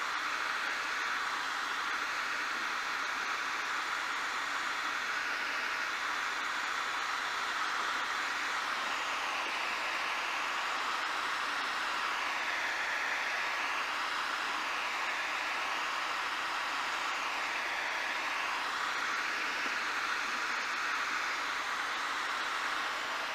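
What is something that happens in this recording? A helicopter's engine and rotor roar steadily from inside the cabin.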